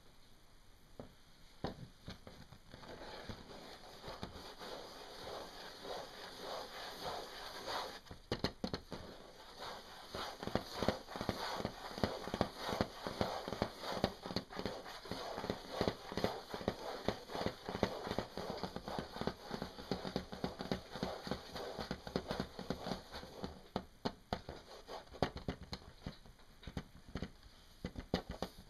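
Fingers tap and scratch on a stiff mask.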